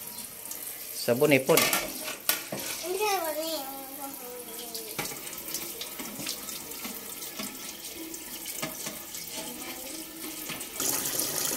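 Dishes clink against each other in a sink.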